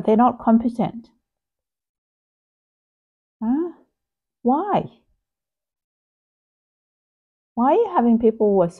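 A middle-aged woman speaks calmly and close to a phone microphone, in short bursts with pauses.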